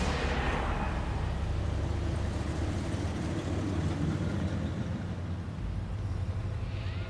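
A car engine rumbles as a car drives past.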